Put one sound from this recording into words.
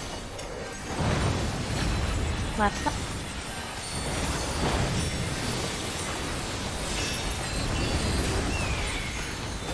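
Game spell effects whoosh and crackle throughout a battle.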